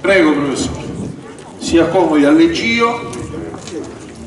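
A man speaks into a microphone over a loudspeaker.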